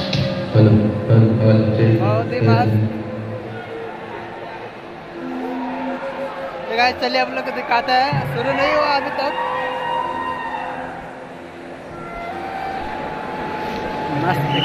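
Music plays loudly over loudspeakers in a large echoing hall.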